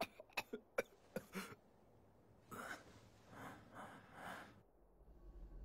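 A young man coughs harshly.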